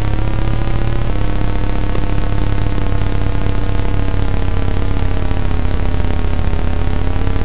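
A buzzy retro game car engine drones steadily, shifting pitch.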